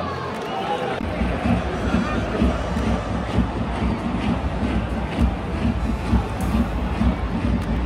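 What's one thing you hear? A large crowd roars and cheers in a wide open stadium.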